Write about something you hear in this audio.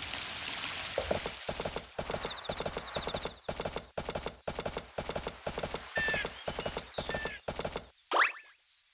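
A horse's hooves beat quickly as it gallops.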